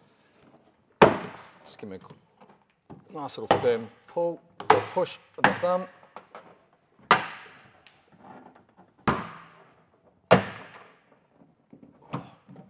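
Plastic panels snap and click sharply into place.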